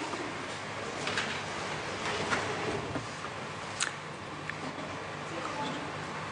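Many people murmur quietly in a large echoing hall.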